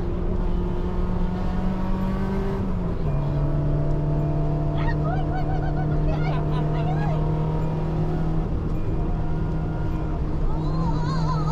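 A car engine drones steadily from inside the car, dropping in pitch as the gear changes.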